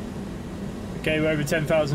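A man speaks into a close microphone with animation.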